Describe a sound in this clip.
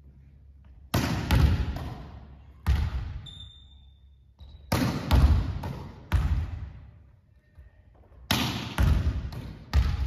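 A volleyball bounces on a wooden floor.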